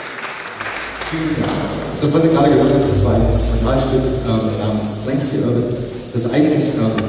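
A band plays lively folk music in a large echoing hall.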